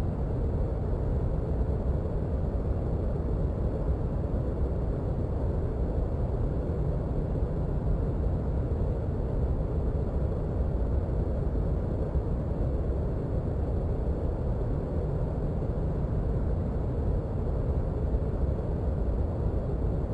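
A jet engine idles with a steady low rumble.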